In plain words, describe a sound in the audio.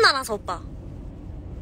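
A young woman exclaims loudly close to a phone microphone.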